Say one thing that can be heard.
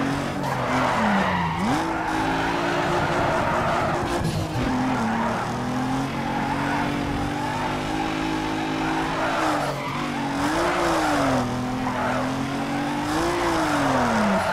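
A racing car engine roars, its pitch rising and falling with the gear changes.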